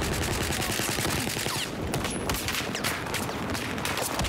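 A rifle fires a quick burst of shots up close.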